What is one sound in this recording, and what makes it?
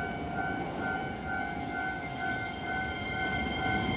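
An electric train starts pulling away with a rising whine.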